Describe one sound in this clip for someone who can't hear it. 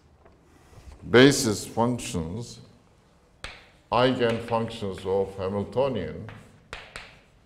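An elderly man lectures in a calm voice.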